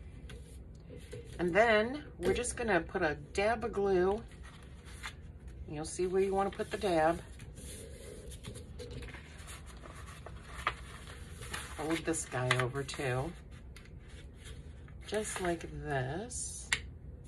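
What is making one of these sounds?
Paper rustles and creases as it is folded by hand.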